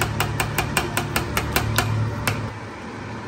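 A spoon clinks against a metal pot.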